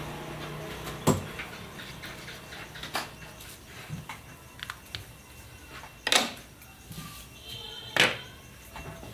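Small plastic parts click and knock against a table.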